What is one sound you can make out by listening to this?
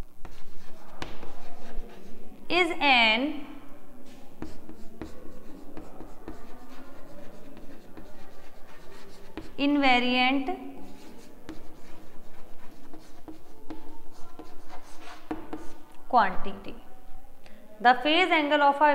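A young woman talks calmly as if teaching, close to a microphone.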